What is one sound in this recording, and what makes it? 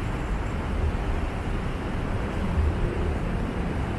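Motorbikes buzz past.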